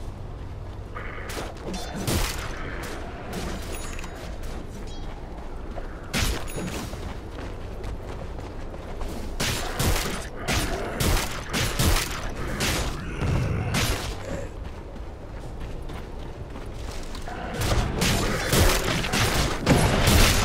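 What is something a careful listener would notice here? Game fighting sounds clash and crackle with bursts of spell effects.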